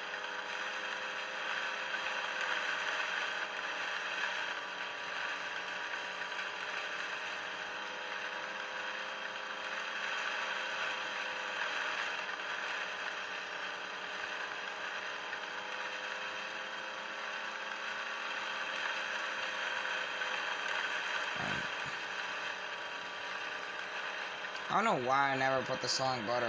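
A race car engine roars steadily through a small speaker.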